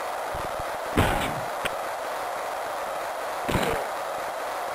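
A hockey stick smacks a puck with a sharp thud.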